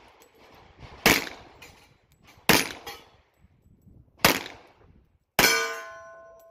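Pistol shots ring out sharply outdoors, one after another.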